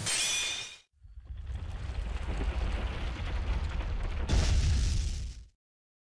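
A loud blast roars and then cuts off.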